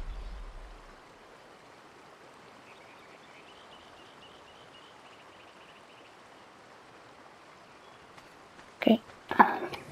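Small waves lap gently at a shore.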